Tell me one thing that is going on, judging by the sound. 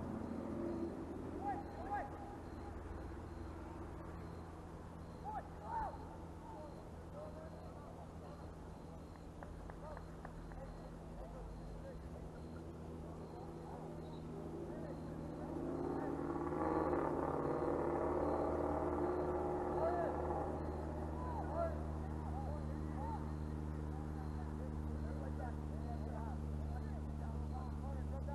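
Young men shout to each other far off across an open field outdoors.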